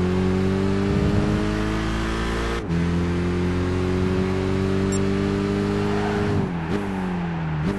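A racing car engine roars at high revs, dropping briefly at each gear change.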